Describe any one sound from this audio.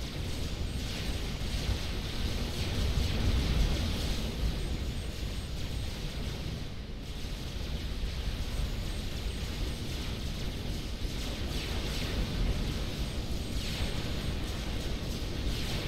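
Explosions and weapon fire rumble steadily.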